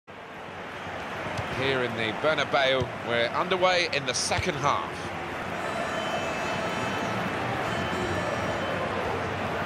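A large stadium crowd roars steadily in the background.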